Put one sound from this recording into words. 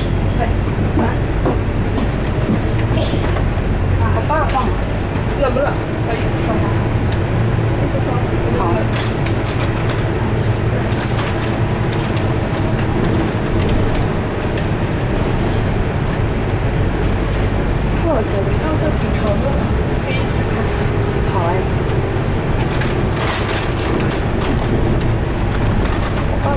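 The bus body rattles and clicks over bumps.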